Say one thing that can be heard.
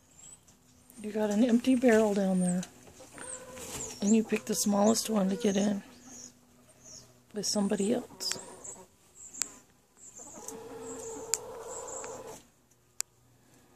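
A hen clucks and squawks loudly close by.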